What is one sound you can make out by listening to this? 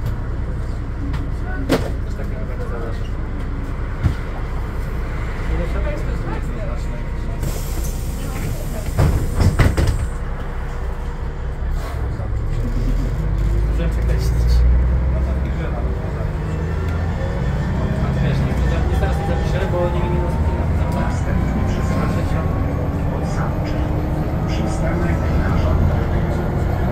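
A bus interior rattles over the road.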